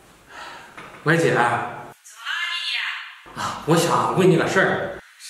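A young man talks on a phone with animation.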